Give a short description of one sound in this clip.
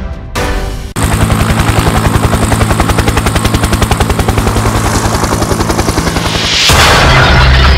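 A helicopter's rotor blades thump rapidly overhead.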